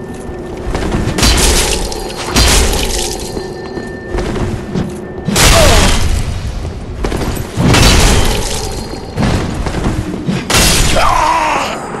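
Swords clash and slash in heavy, ringing blows.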